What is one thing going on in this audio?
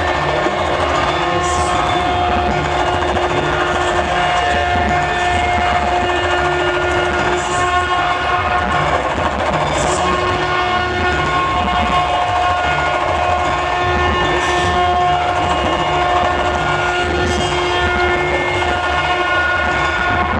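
Loud music plays through loudspeakers outdoors.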